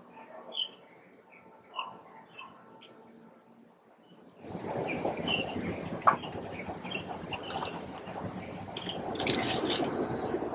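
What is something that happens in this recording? A small bird chirps in short, high notes.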